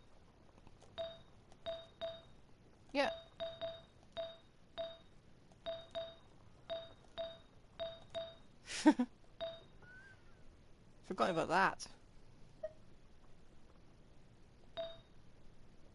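Short menu chimes click quickly, one after another.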